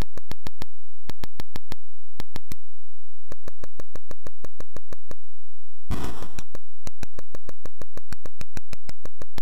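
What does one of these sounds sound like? Rapid electronic clicks tick in quick bursts from a retro video game.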